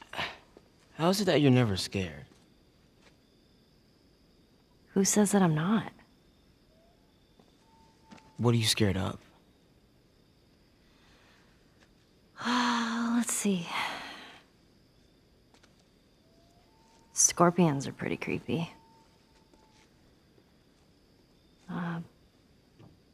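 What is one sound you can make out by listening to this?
A young boy answers in a low, calm voice.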